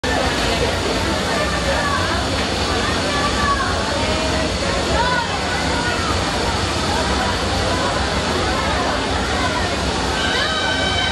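A large outdoor crowd murmurs and chatters nearby.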